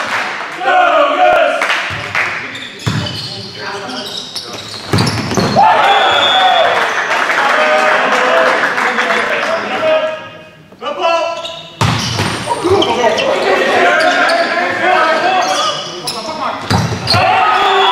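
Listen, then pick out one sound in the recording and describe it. A volleyball is struck hard in a large echoing hall.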